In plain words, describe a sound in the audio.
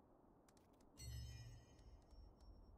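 A soft menu chime sounds.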